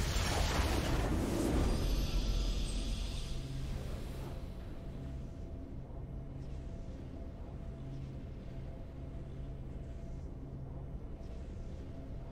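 A triumphant game fanfare swells and then settles into soft music.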